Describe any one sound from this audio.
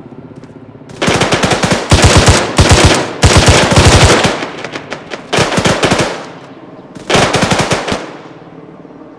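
A machine gun fires loud rapid bursts that echo outdoors.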